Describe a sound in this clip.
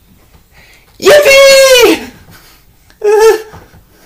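A young man shouts and laughs loudly, close by.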